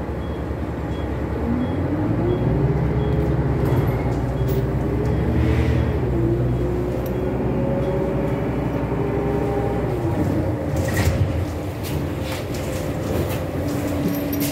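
Loose fittings rattle and clatter inside a moving bus.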